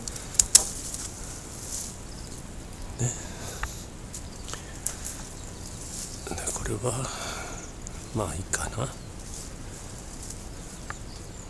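Pruning shears snip through thin branches with sharp clicks.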